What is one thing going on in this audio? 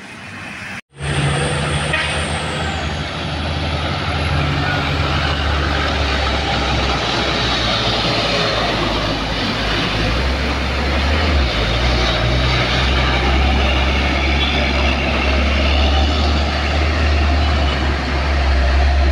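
A truck engine rumbles and labours loudly up close.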